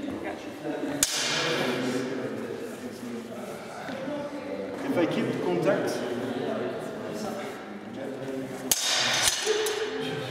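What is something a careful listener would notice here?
Wooden practice swords clack sharply together in an echoing hall.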